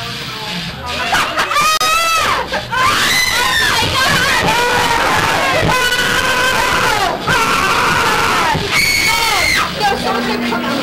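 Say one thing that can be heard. A young man shouts loudly in alarm.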